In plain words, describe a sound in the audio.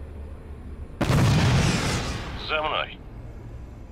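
An explosion bursts with a loud blast.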